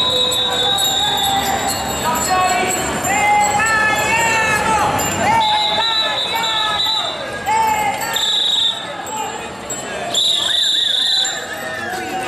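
A large crowd of men and women talks and shouts outdoors.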